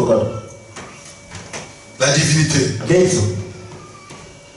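A man speaks into a microphone over loudspeakers in an echoing hall.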